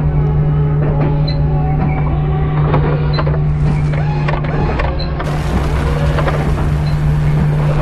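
Robotic arms whir and clank as they move.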